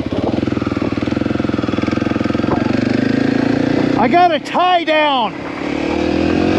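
Another motorcycle approaches and roars past with a quick pitch drop.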